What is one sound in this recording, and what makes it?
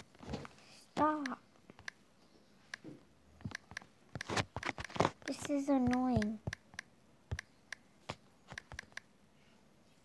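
Keyboard taps click as a message is typed.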